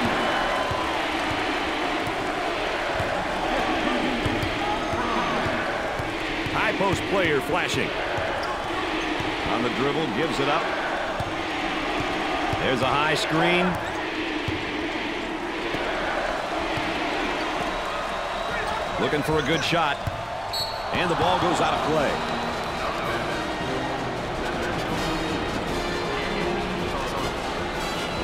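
A large indoor crowd cheers and roars steadily.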